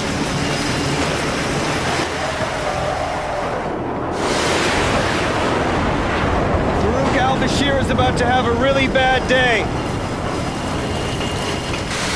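Rough sea waves wash and churn nearby.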